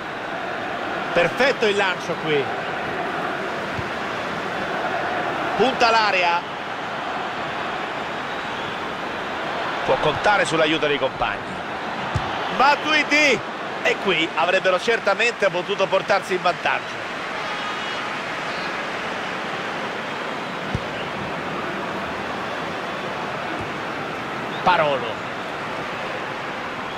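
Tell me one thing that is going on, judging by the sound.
A large crowd murmurs and roars steadily in a stadium.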